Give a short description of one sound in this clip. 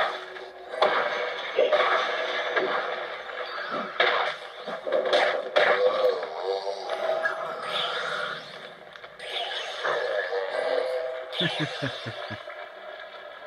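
Video game sound effects crash and burst with magical blasts.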